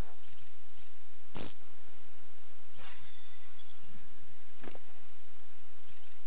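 Game menu clicks and swooshes sound as windows open and close.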